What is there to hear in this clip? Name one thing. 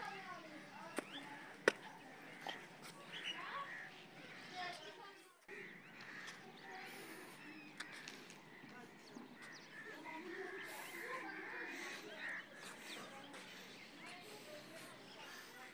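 Birds chirp and twitter nearby.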